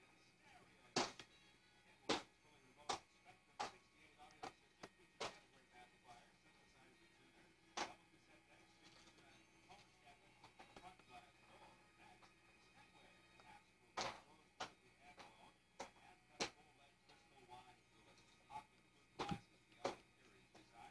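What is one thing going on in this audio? A baby bangs and taps on a plastic toy, making sharp knocks.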